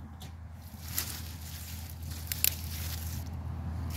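Leaves rustle as a hand brushes through them.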